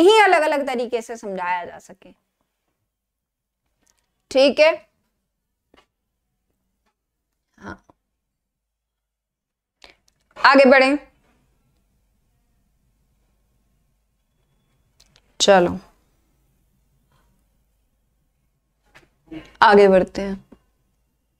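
A young woman speaks clearly into a close microphone, in short bursts with pauses.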